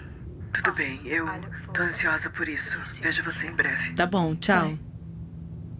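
A young woman speaks calmly into a phone.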